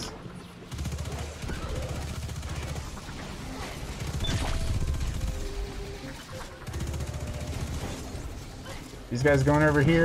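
Rapid gunfire rattles in a video game.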